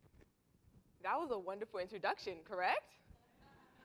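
A young woman speaks brightly through a microphone in a large room.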